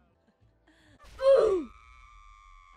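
A window shatters.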